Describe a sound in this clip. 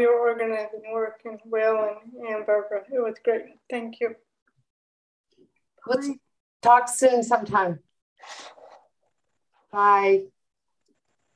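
A middle-aged woman talks warmly and with animation over an online call.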